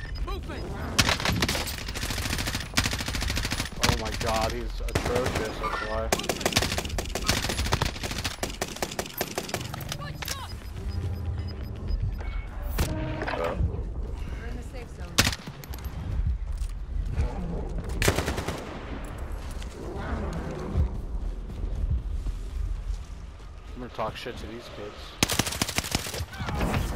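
Rifle shots crack in rapid bursts.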